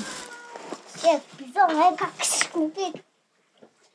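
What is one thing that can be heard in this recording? A young child talks excitedly up close.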